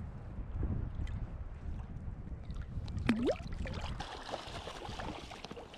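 Water sloshes and splashes close by.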